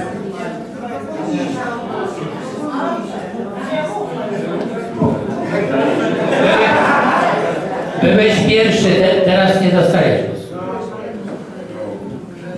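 A man speaks with animation to a group in a room.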